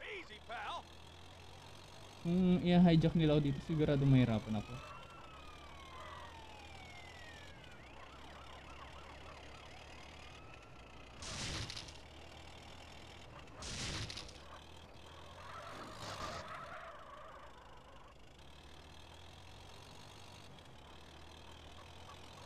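A bulldozer engine rumbles low and steady.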